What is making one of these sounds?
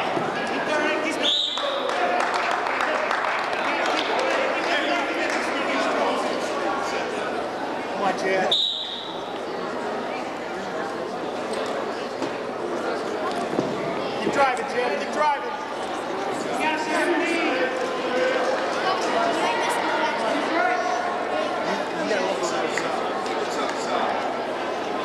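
A crowd of spectators murmurs and shouts in a large echoing gym.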